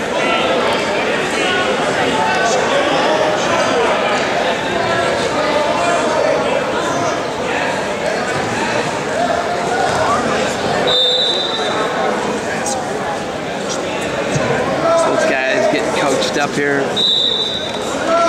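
Many people chatter at once in a large echoing hall.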